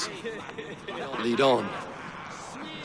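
A second man answers briefly in a deep voice.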